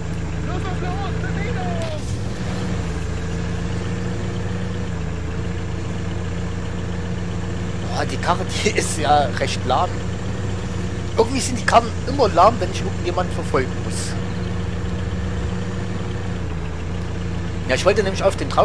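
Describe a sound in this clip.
A jeep engine hums steadily as it drives along a rough dirt track.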